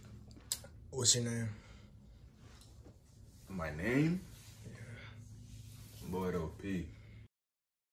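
A young man speaks calmly and briefly, close by.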